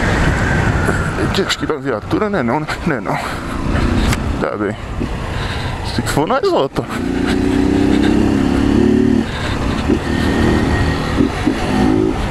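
A motorcycle engine revs and roars up close as it rides along.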